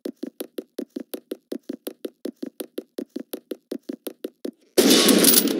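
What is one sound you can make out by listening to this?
Footsteps crunch quickly and evenly through snow.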